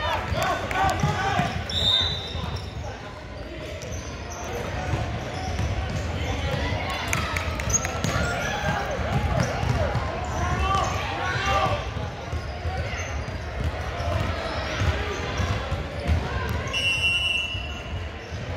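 Players and spectators call out and chatter in a large echoing hall.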